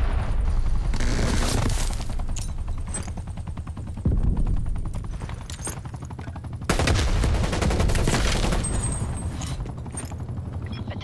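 Rapid gunfire bursts from an automatic rifle.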